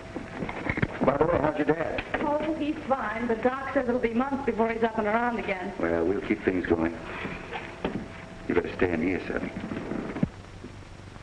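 A young woman speaks tensely close by.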